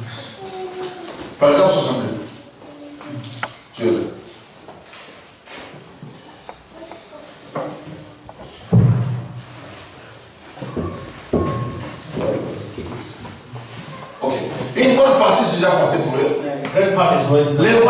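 A second man reads out calmly into a handheld microphone.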